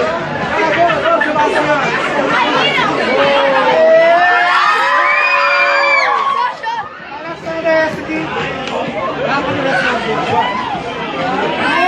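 A crowd of teenage girls shrieks and cheers excitedly nearby.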